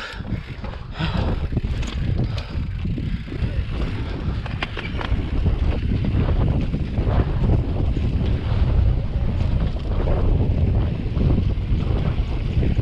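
Bicycle tyres roll and crunch over rock and gravel.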